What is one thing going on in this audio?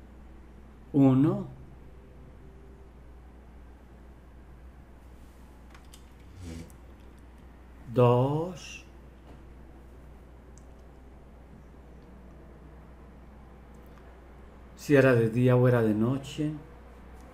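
A middle-aged man speaks calmly in short bursts through an online call.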